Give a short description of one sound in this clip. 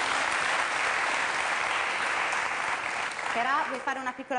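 A studio audience applauds loudly.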